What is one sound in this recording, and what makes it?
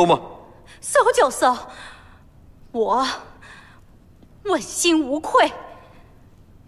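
A young woman speaks firmly.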